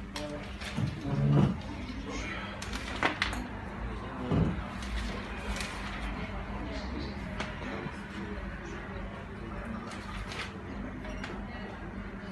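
Newspaper pages rustle.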